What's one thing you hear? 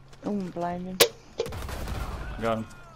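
A revolver fires a loud, sharp shot.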